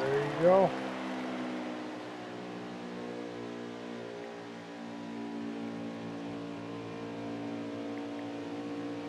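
A racing truck engine drones steadily at high speed.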